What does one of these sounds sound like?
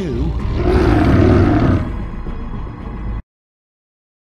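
A monstrous wolf-like creature snarls with a deep growl.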